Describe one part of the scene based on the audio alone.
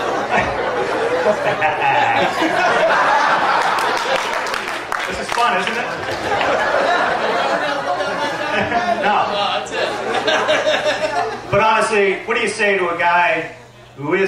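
A crowd of guests murmurs in the background.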